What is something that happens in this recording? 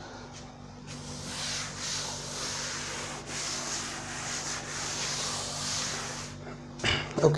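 A cloth rubs and wipes across a chalkboard.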